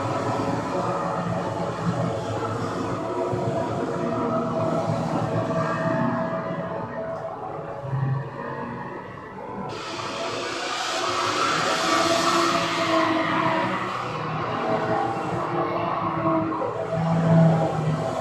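Racing car engines roar and whine steadily, rising and falling in pitch as they shift gears.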